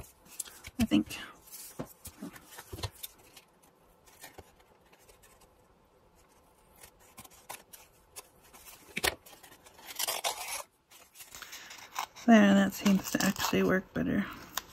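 Paper crinkles and rustles under hands.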